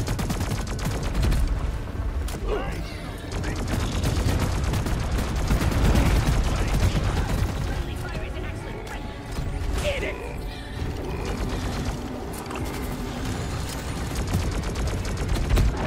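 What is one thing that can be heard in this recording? A game gun fires in rapid bursts.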